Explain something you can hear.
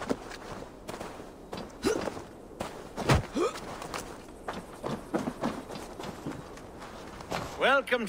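Footsteps thud on the ground and wooden steps.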